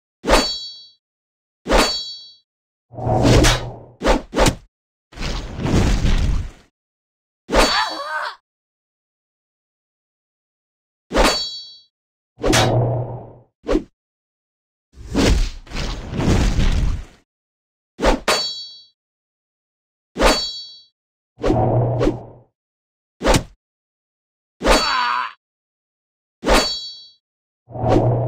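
Short bursts of fighting sounds, with blows and magical blasts, come again and again.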